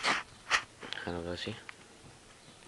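A young man talks in a low voice close by.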